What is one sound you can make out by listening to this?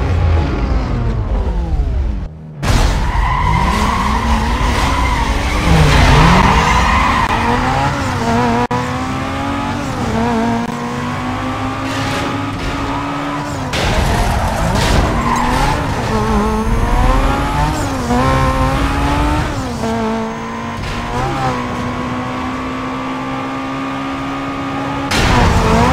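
A racing car engine revs loudly and climbs through the gears.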